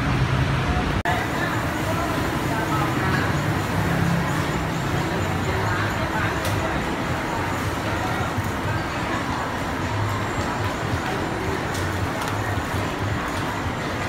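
A crowd of people chatters indoors in the background.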